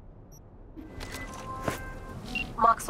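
A phone rings with short electronic tones.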